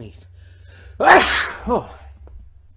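A man sneezes loudly into his arm.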